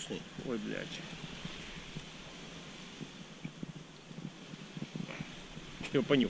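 Leaves rustle as a hand brushes through plants.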